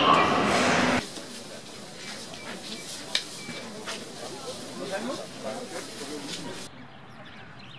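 People chatter outdoors at a busy market.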